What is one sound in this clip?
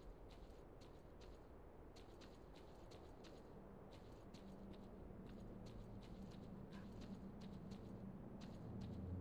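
Footsteps crunch steadily on rocky ground.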